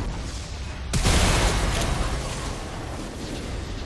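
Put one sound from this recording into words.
A loud game explosion booms and rumbles away.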